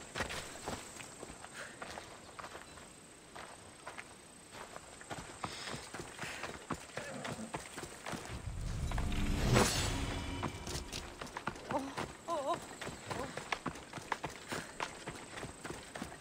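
Footsteps crunch on dirt and gravel as a person runs.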